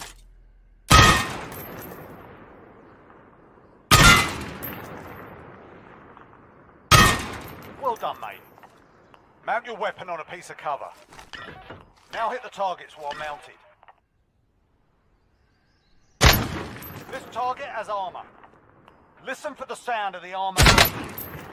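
A rifle fires single loud shots that ring out and echo.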